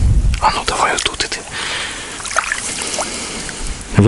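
A fish splashes into shallow water.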